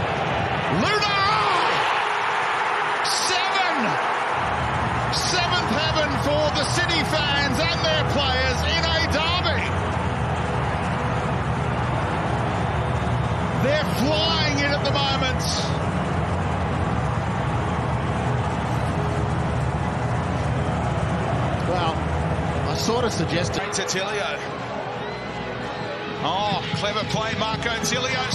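A large stadium crowd cheers and roars in the open air.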